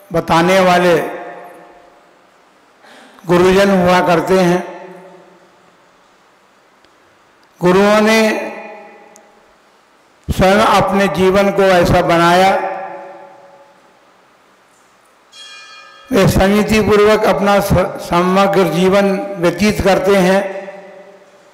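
An elderly man speaks slowly and forcefully into a microphone, in short bursts with pauses.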